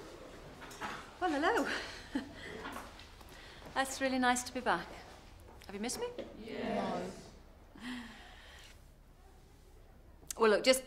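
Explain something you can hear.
A young woman speaks up clearly to a group.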